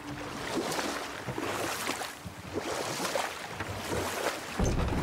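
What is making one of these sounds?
Oars splash and paddle through water.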